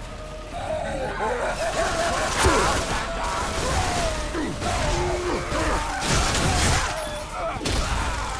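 A creature growls and roars.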